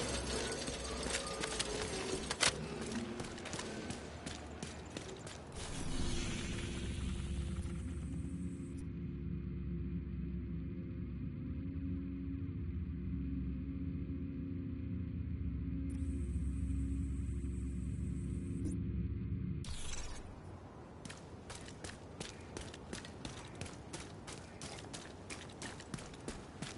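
Footsteps tread steadily on hard pavement outdoors.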